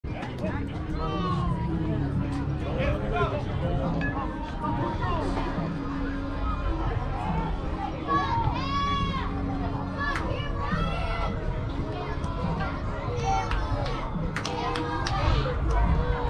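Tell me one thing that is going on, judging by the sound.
Young men and boys call out and chatter across an open field.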